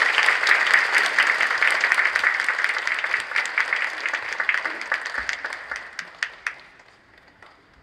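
An audience applauds in a large hall, fading away.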